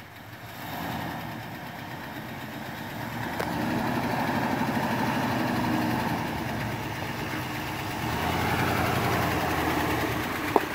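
An engine rumbles and revs as a truck climbs a rough dirt track.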